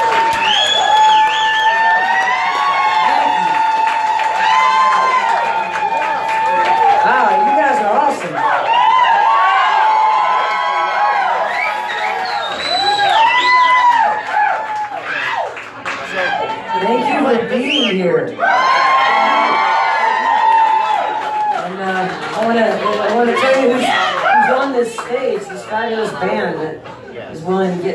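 A woman sings into a microphone, heard from the crowd of a small live show.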